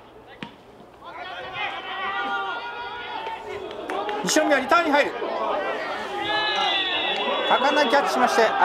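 A crowd cheers and shouts loudly from the sidelines outdoors.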